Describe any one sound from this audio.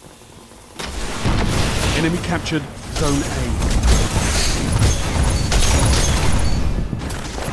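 Gunshots crack and blasts boom in quick bursts.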